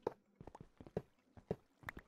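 Wooden blocks crack and break apart.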